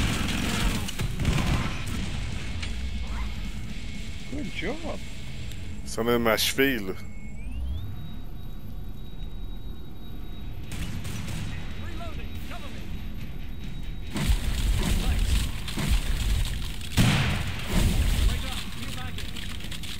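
Gunfire rattles in bursts with loud booming blasts.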